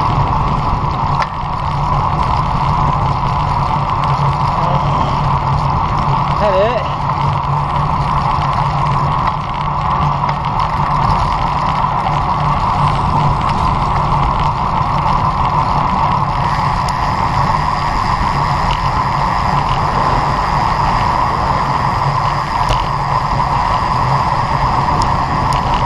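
Wind rushes loudly over a moving bicycle.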